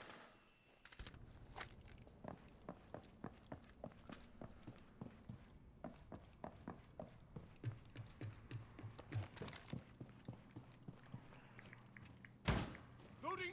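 Quick footsteps thud steadily across a hard floor.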